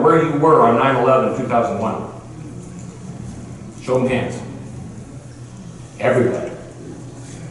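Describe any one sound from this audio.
A man speaks through a microphone in short, emphatic bursts, in a hall with a slight echo.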